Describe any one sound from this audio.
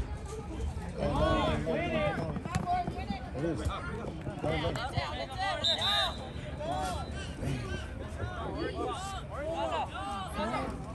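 A crowd of spectators close by shouts and cheers loudly outdoors.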